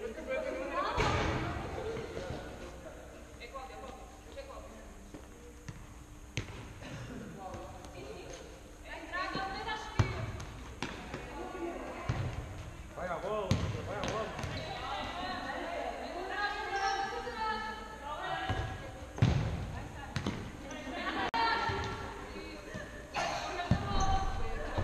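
A ball thuds as it is kicked.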